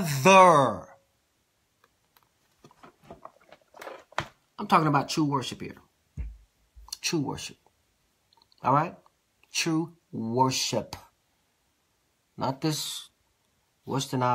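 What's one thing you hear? A middle-aged man speaks with animation close to a microphone, in short bursts with pauses.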